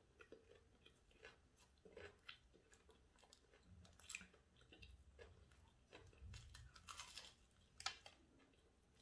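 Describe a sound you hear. A woman bites into crispy fried food with loud crunches close to a microphone.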